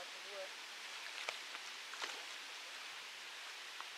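A fishing reel clicks as a line is wound in.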